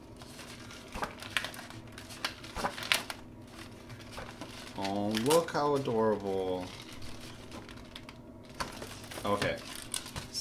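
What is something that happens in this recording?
Stiff paper pages rustle and flap as they are flipped.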